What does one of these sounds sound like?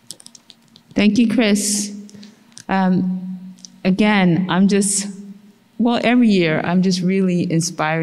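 A woman speaks through a microphone in a large echoing room.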